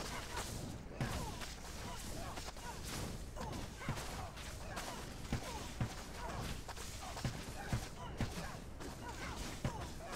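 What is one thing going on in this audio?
Heavy blows thud again and again.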